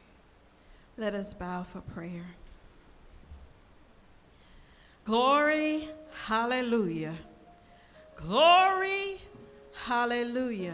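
A woman sings into a microphone, heard through loudspeakers.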